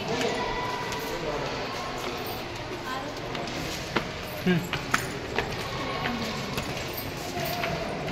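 A young woman speaks and laughs close by.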